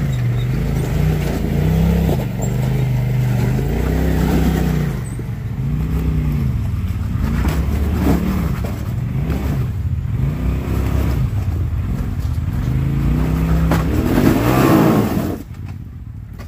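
Mud splashes under spinning tyres.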